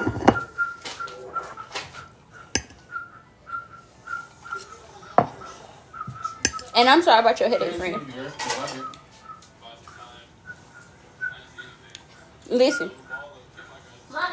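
A fork clinks on a plate.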